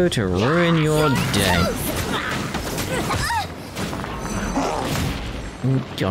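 Fiery blasts and heavy impacts crash in quick bursts.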